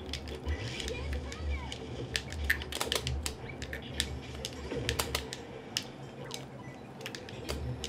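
Sharp video game hit sounds and zaps crackle in quick bursts.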